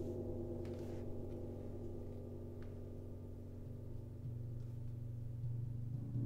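Metal singing bowls ring and hum with long, overlapping tones.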